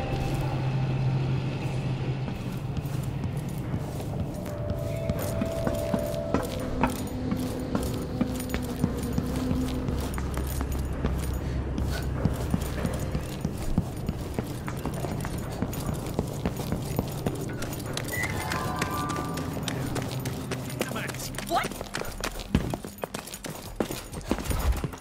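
Footsteps tap steadily on hard floors and stairs.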